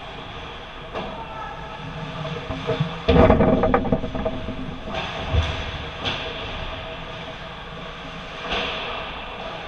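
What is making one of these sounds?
A hockey puck clacks against sticks and boards, echoing around a large hall.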